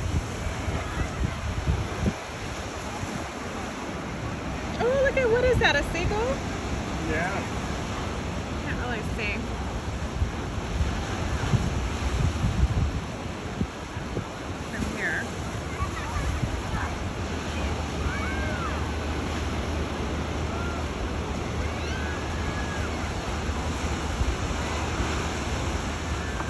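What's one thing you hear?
Ocean waves surge and wash against rocks.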